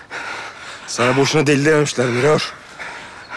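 A man speaks intensely up close.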